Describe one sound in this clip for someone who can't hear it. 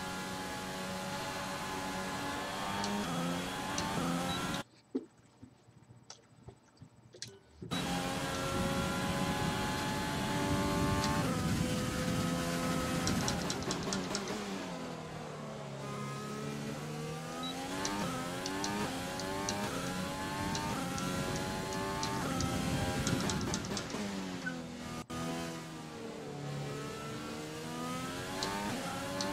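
A racing car engine whines loudly, rising and falling in pitch as it speeds up and brakes.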